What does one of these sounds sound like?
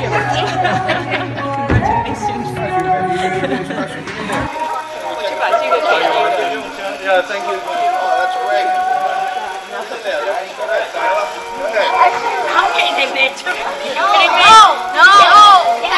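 A crowd of young people chatters and cheers in an echoing hall.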